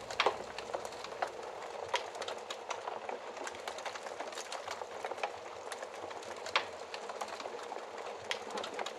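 Candle flames crackle and pop softly.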